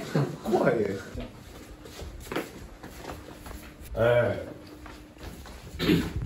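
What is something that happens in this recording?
Footsteps walk across the floor.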